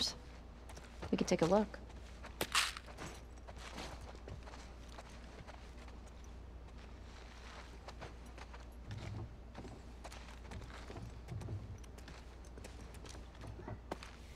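Footsteps scuff softly on a hard floor.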